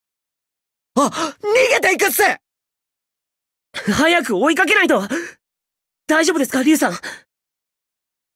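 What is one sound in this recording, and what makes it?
A young man speaks with alarm.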